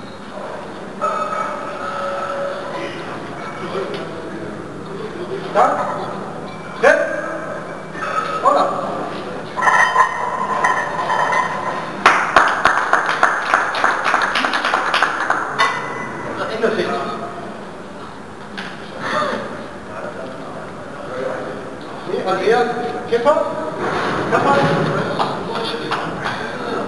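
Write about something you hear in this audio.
Several men shout encouragement loudly.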